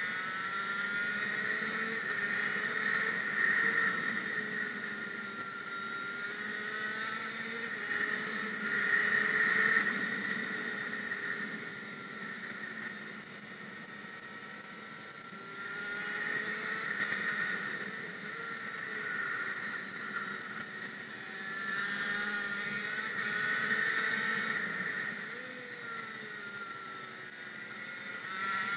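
A kart engine whines close by, rising and falling in pitch as it speeds up and slows through the bends.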